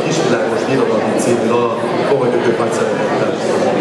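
A man speaks through a microphone in a large hall.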